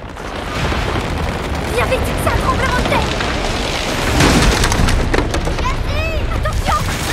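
A young woman shouts a warning.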